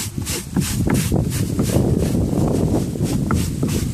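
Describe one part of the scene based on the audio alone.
A hand scrubs wet sandy concentrate across a ribbed rubber mat.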